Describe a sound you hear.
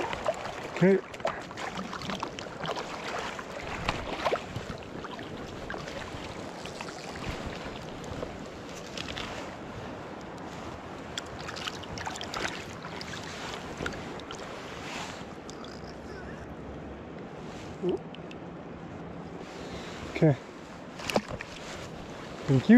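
Water ripples and laps steadily in a river.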